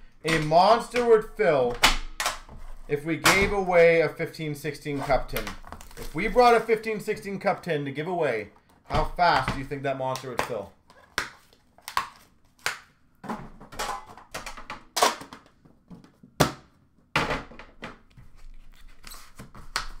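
Small cardboard boxes knock and tap as hands handle them close by.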